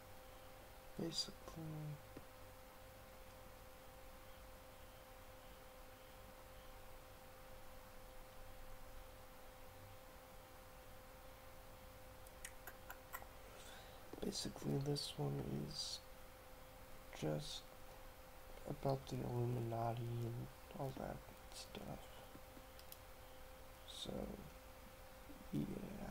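A young man speaks quietly and haltingly into a nearby microphone.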